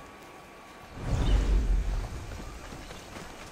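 A body lands with a heavy, rushing thud.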